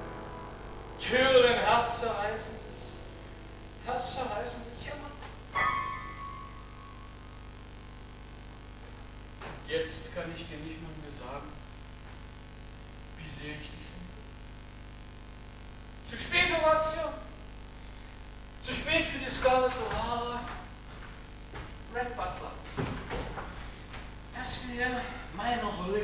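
A young man speaks loudly on a stage, heard from a distance in a large hall.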